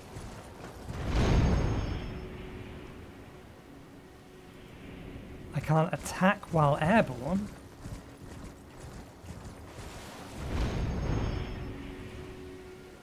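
A powerful magic blast whooshes and roars.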